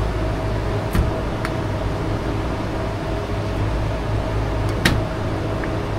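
A metal panel latch clicks.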